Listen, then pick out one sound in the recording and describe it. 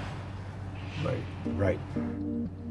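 A younger man speaks nearby.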